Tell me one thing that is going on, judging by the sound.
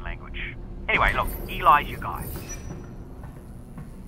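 A metal folding gate rattles as it slides open.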